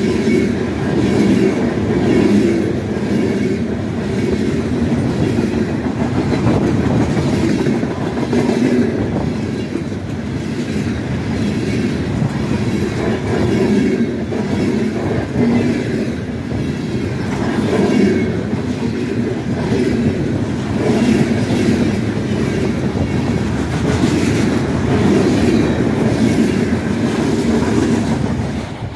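A freight train rumbles past close by at speed.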